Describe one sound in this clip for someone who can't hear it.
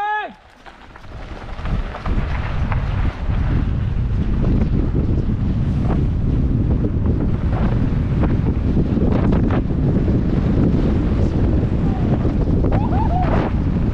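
Bicycle tyres rumble and crunch steadily over a dirt trail.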